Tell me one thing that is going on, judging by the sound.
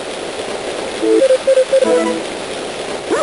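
Short electronic beeps chirp quickly in a row.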